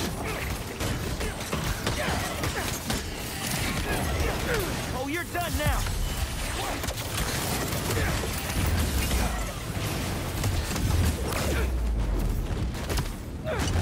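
Bursts of energy blast and crackle.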